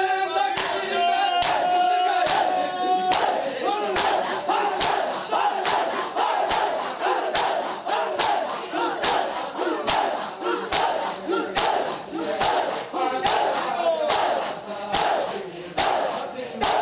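A man chants a lament loudly.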